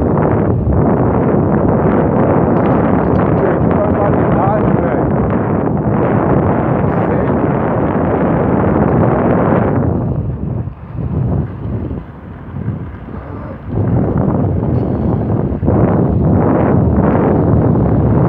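Wheels rumble roughly over asphalt, quieting briefly midway.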